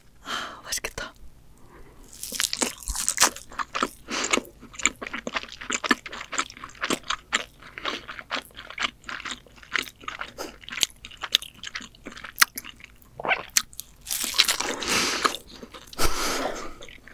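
A young woman chews crispy crust close to a microphone.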